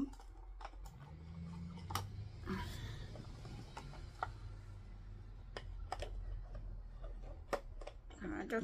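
Plastic clicks and knocks while being handled.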